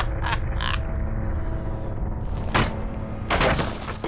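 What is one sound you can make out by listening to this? A wooden pallet cracks and breaks apart.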